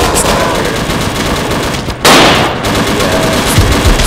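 A rifle fires a quick burst of gunshots.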